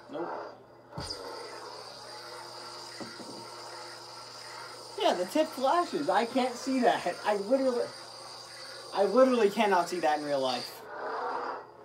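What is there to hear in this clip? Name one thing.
A toy lightsaber hums steadily.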